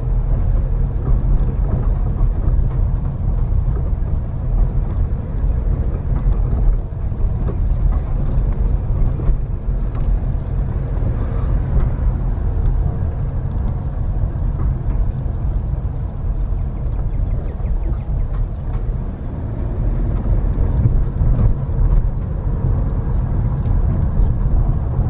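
Tyres roll and bump over a rough, cracked road.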